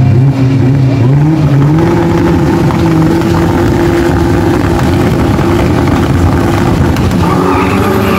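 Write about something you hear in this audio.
A car engine idles with a loud, rough rumble close by.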